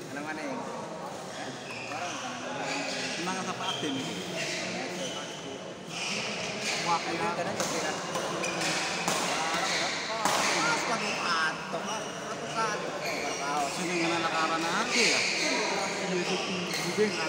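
Shuttlecocks are struck with rackets.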